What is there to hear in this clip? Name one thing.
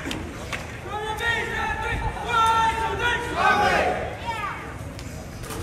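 Young men shout and cheer nearby, outdoors.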